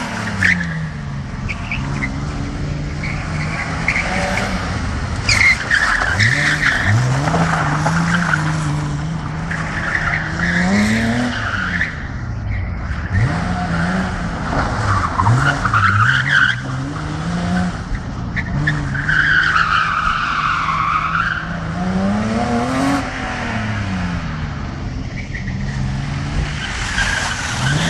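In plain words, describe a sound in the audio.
A car engine revs hard, rising and falling again and again.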